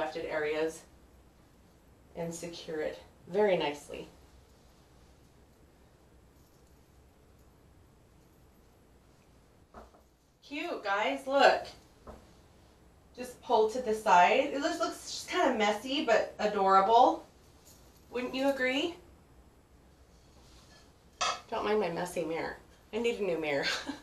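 A woman speaks calmly and closely into a microphone, in pauses.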